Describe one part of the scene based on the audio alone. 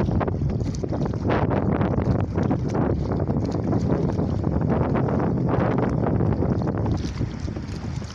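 Wind blows hard across open water.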